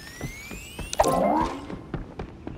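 A bright chime rings out as a crate opens.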